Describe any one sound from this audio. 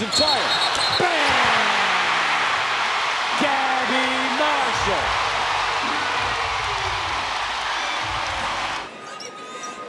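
A large crowd roars and cheers loudly in an echoing arena.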